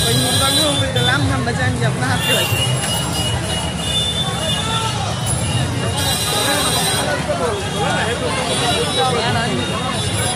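A large crowd of men and women chatters and shouts loudly all around, close by.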